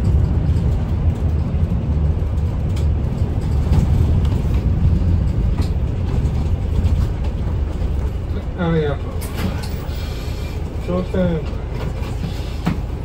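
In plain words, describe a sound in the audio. A vehicle's engine rumbles low and steady from inside as it drives along.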